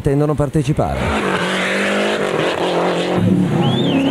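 A rally car engine revs hard and races past.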